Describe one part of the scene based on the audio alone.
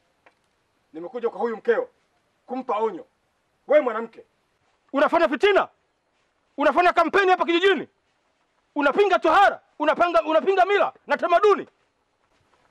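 An older man speaks loudly and forcefully.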